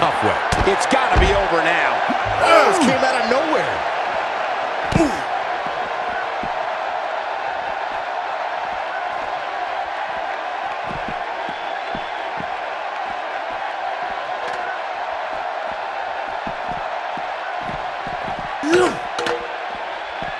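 Heavy blows thud against a body in a brawl.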